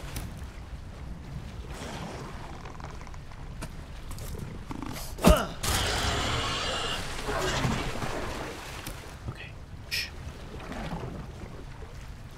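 A wooden log knocks and scrapes.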